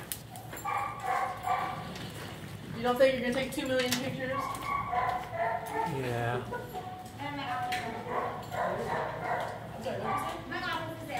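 A dog's claws tap on a hard floor.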